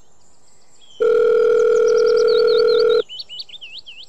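A phone rings with a steady electronic tone.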